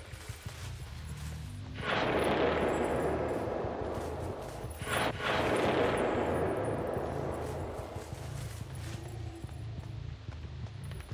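Heavy footsteps thud steadily on soft ground.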